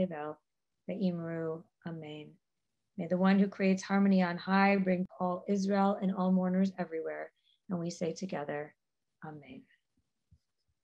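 A middle-aged woman chants slowly over an online call.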